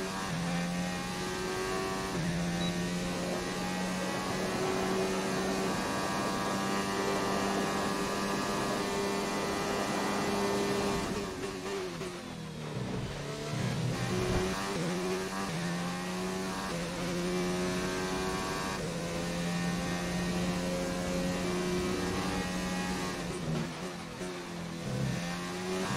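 A racing car engine screams at high revs, dropping in pitch as it slows for a corner and then climbing again as it speeds up.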